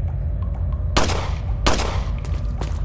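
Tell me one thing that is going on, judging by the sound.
A pistol fires two shots in quick succession.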